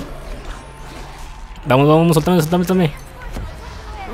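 Weapons strike and magic blasts whoosh in a fight.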